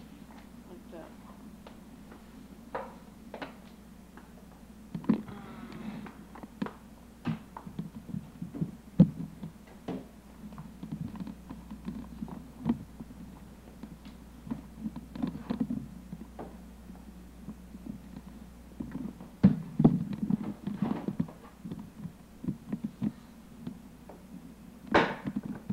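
Plastic toys knock and clatter.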